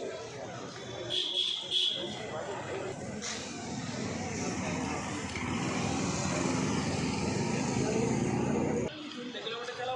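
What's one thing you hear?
Motorcycle engines rumble as the bikes ride past on a street.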